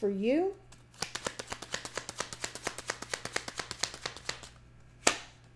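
Cards riffle rapidly as a middle-aged woman shuffles a deck.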